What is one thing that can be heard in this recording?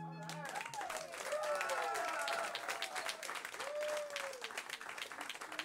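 A saxophone plays a short run of notes.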